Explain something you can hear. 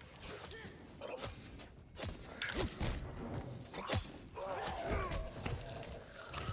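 A creature snarls and groans.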